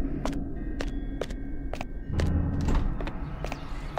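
A pair of doors swings open.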